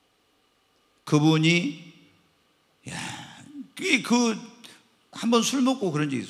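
A middle-aged man speaks with animation into a microphone, in a large echoing hall.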